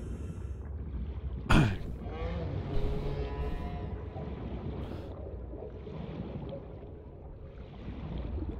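A low underwater rumble drones steadily.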